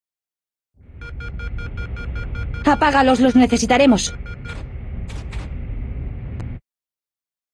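An alarm tone sounds steadily.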